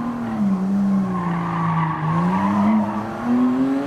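Tyres squeal briefly through a tight corner.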